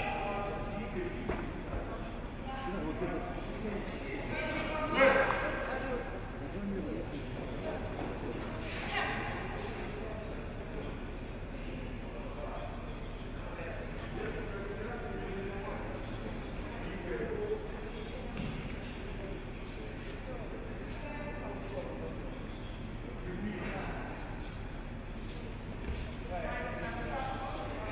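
People chatter quietly in the background of a large hall.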